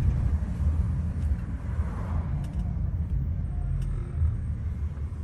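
A passing truck's engine rumbles close by.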